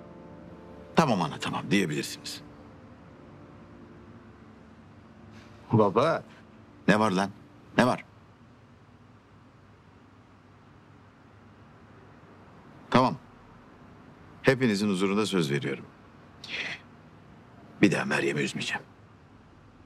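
An older man speaks calmly and seriously, close by.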